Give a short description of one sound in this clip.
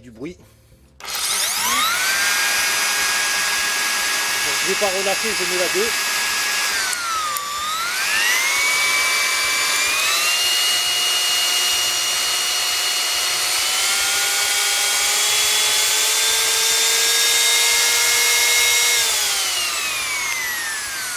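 An electric power tool's motor spins up to a loud high whine, dips and rises in pitch as its speed is adjusted, and winds down at the end.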